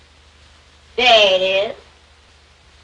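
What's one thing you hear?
A young boy speaks briefly.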